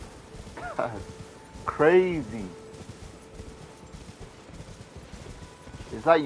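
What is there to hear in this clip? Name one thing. Horse hooves gallop over grass.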